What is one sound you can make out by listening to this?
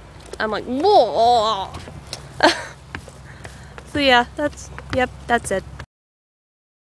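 A young woman sings and talks playfully close by.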